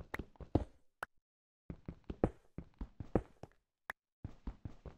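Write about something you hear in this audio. A block pops loose.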